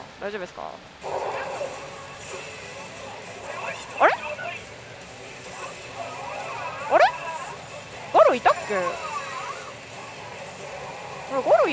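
A pachinko machine plays loud whooshing sound effects.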